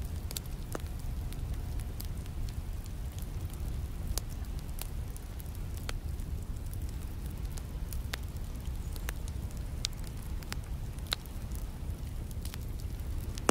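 A wood fire crackles and pops close by.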